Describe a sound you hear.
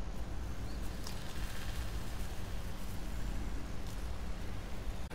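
Footsteps shuffle through grass.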